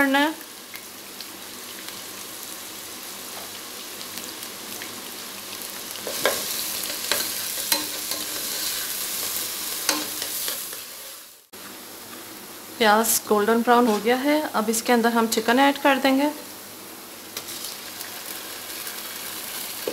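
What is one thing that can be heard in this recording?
Onions sizzle in hot oil.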